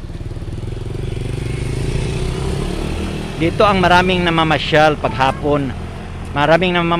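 A motor scooter rides close by with a buzzing engine.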